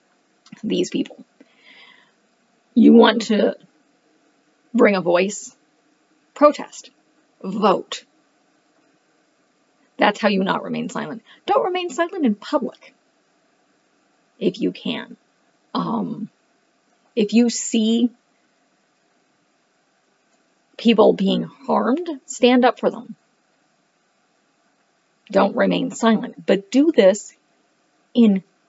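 A woman talks calmly and steadily into a nearby microphone, with short pauses.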